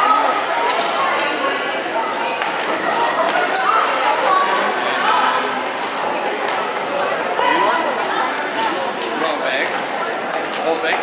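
A crowd of young people chatters throughout, echoing in a large hall.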